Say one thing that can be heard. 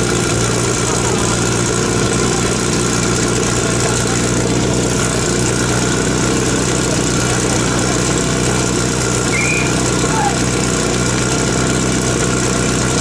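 A portable fire pump engine runs.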